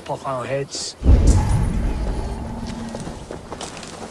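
A deep whooshing boom swells and fades.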